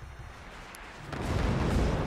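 A shell bursts with a loud rushing blast.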